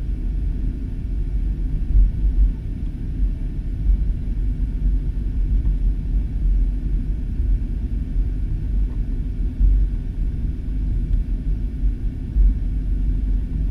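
A jet airliner's engines rumble steadily, heard from inside.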